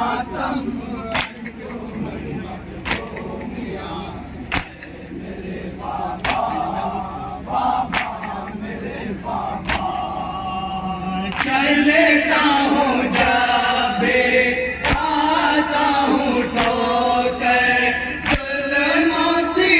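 A man chants a lament through a loudspeaker.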